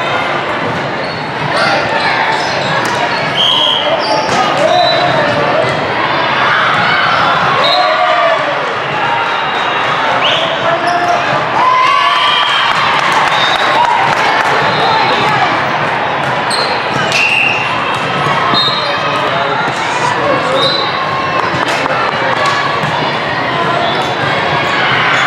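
A ball thuds off players' arms.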